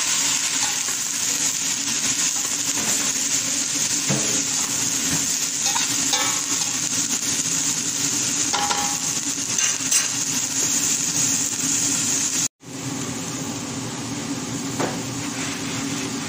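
Food sizzles and crackles as it fries in a pan.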